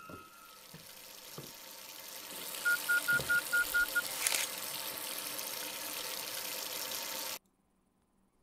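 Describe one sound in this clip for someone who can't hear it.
Water pours steadily from a tap, then stops.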